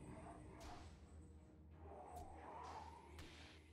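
A magic spell shimmers and whooshes.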